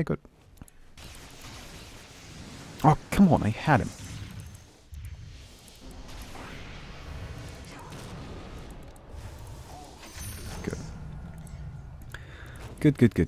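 Game spell effects whoosh and crackle.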